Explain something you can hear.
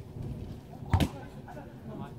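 A ball is kicked with a thud.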